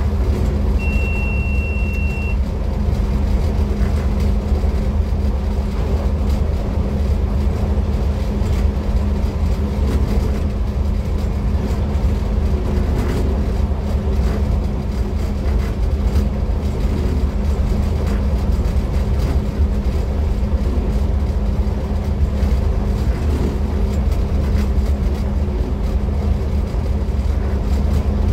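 Train wheels clack now and then over the rails.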